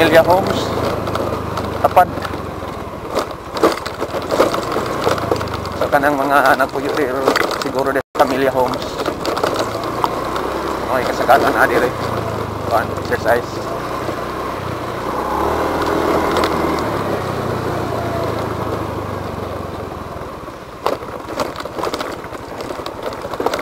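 A motor scooter engine hums steadily while riding.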